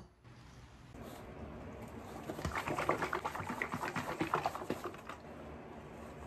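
Hands rub and squeeze noodles in a bowl with a soft rustling.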